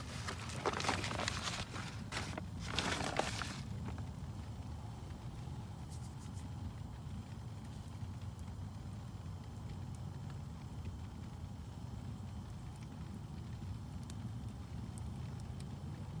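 Flames hiss and roar softly.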